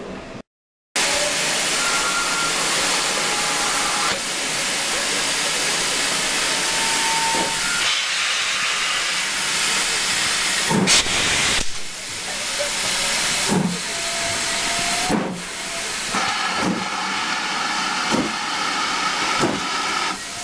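A steam locomotive hisses loudly as steam bursts out close by.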